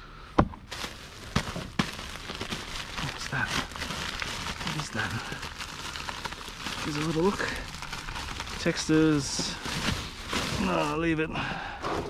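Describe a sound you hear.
Plastic bags rustle and crinkle as gloved hands press them down.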